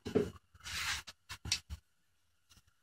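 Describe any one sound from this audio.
Light knocks and rattles come as a small power tool is picked up and handled.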